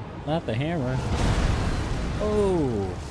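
A fiery explosion bursts with a loud roar of flame.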